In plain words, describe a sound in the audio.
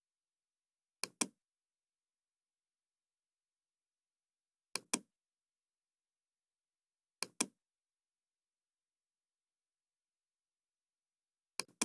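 A computer mouse clicks in quick pairs.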